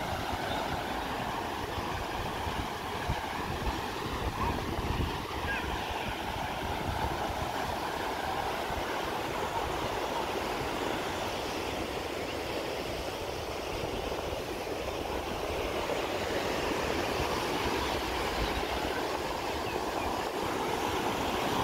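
Wind blows outdoors with low rumbling gusts.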